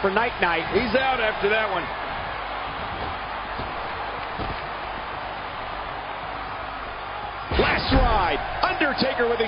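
A large arena crowd cheers steadily.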